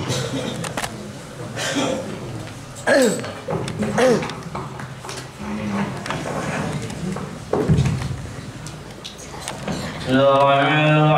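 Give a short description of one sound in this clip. Young men talk nearby in a small echoing room.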